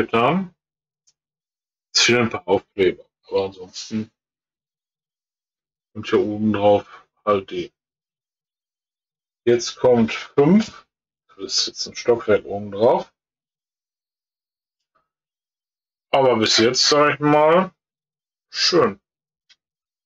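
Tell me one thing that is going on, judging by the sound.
A middle-aged man talks calmly and close by, in short bursts with pauses.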